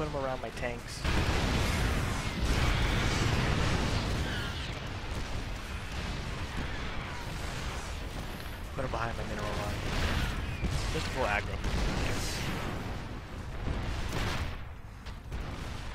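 Gunfire and explosions rumble steadily in a game battle.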